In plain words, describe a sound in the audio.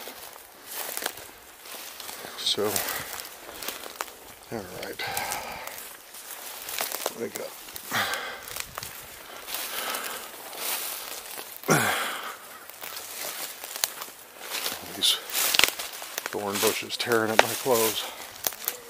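An older man talks calmly, close to the microphone.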